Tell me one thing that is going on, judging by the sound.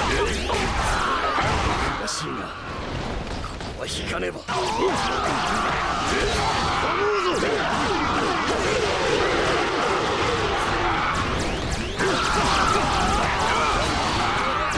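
Blades swish and strike again and again in a noisy battle.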